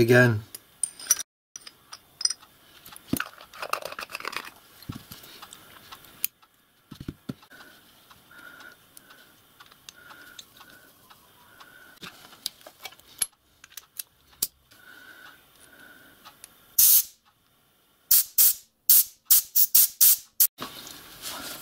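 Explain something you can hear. Small metal parts click and tap together as they are handled.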